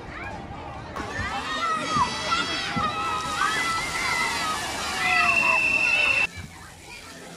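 Water splashes loudly onto a pool.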